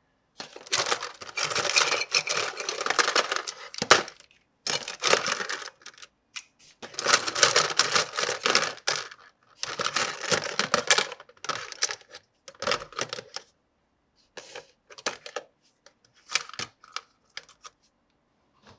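Plastic toy pieces rattle and clatter as a hand rummages through a box.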